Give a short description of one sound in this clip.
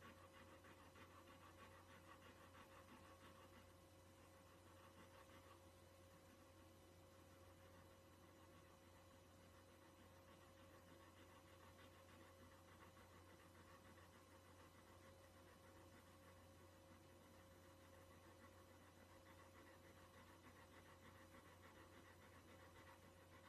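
A dog pants quickly and steadily, close by.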